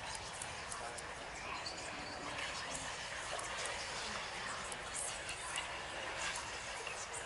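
Combination lock dials click as they turn.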